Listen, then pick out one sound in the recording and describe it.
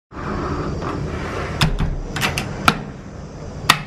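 A door handle turns and the latch clicks.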